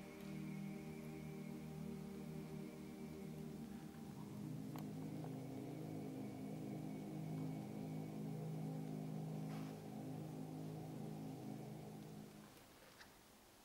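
A male choir sings slowly in deep voices, echoing in a large hall.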